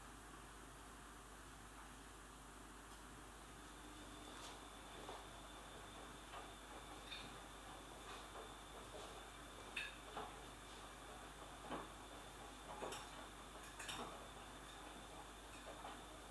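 A man handles rustling clothing.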